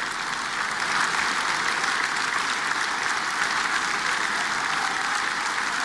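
An audience applauds steadily in a large hall.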